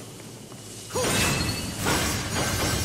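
A sword slashes and strikes with sharp clanging hits.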